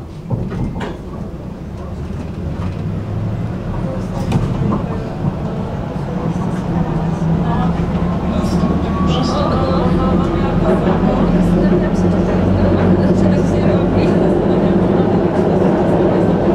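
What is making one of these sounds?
A tram rumbles steadily, growing louder as it picks up speed.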